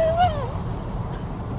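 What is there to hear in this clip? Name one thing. A young woman cries out in pain close by.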